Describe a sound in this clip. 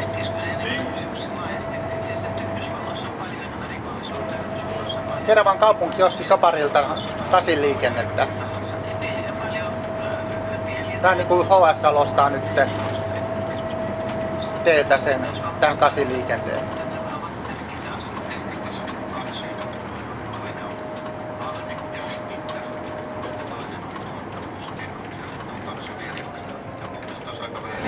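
Tyres roll on asphalt with a steady rumble.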